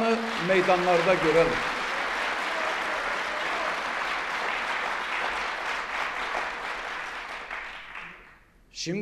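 A large crowd applauds and then fades.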